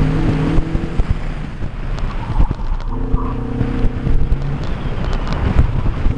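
A car engine revs hard, rising and falling in pitch close by.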